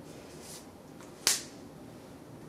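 A palette knife scrapes and taps against a plastic palette.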